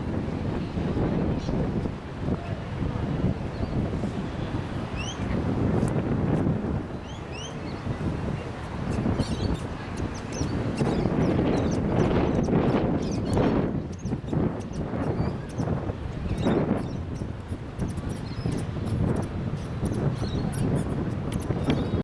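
Strong wind buffets outdoors.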